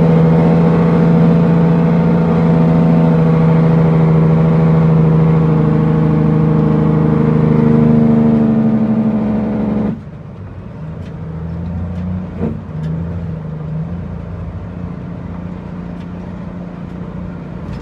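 A truck engine drones loudly and steadily, then turns quieter.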